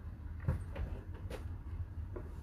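A plastic cup knocks against a table.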